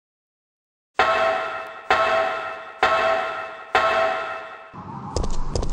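Footsteps clang on metal ladder rungs, ringing briefly.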